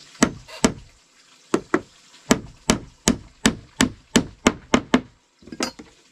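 A hammer taps rapidly on wood, close by.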